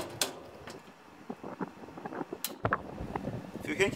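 A knob clicks on a gas grill.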